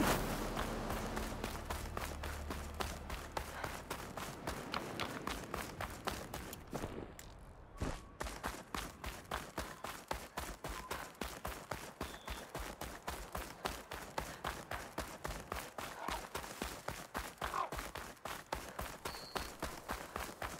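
Quick footsteps patter steadily along a dirt path.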